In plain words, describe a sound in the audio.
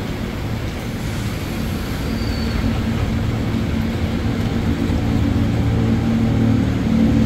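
An electric train hums low and steadily, growing louder as it starts to move.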